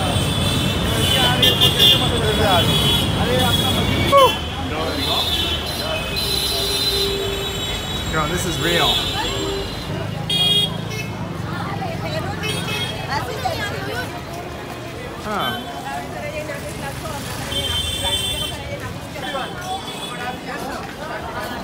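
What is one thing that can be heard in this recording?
A busy crowd of men and women chatter all around outdoors.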